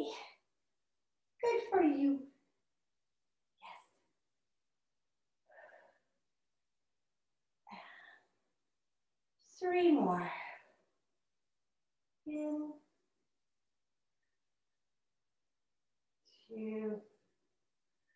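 A woman speaks calmly in short bursts close by.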